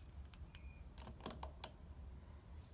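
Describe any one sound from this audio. A test lead's plug clicks into a socket.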